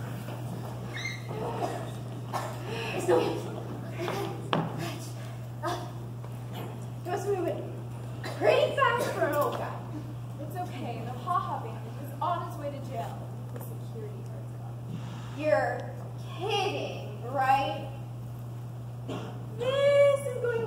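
Young actors speak loudly and with animation on a stage.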